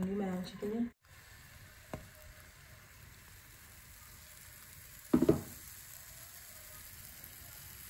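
Batter sizzles softly in a hot pan.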